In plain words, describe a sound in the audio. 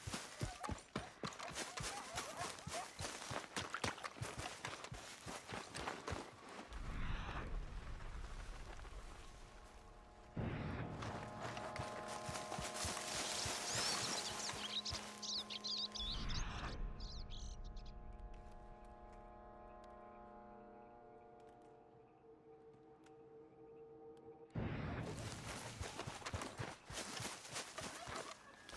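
Footsteps rustle through tall grass and undergrowth.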